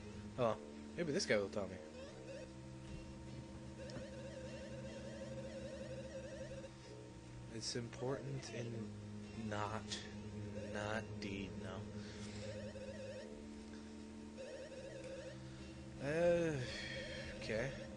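Upbeat video game music plays steadily.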